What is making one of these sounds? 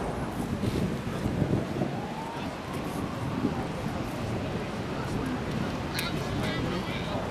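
Wind blows steadily across open water outdoors.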